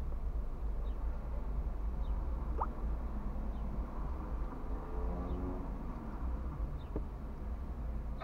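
Cars pass by slowly on the street outside.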